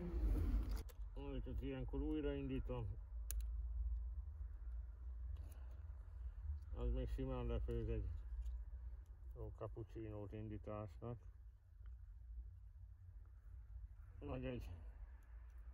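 A man speaks quietly nearby in short phrases.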